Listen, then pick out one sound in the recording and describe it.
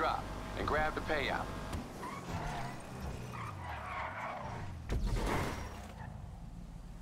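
A car engine roars and revs as the car speeds along.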